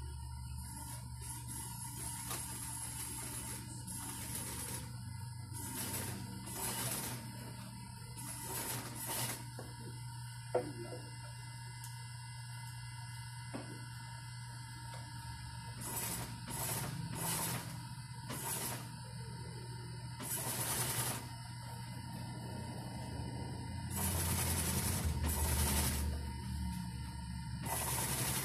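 A sewing machine hums and rattles steadily close by.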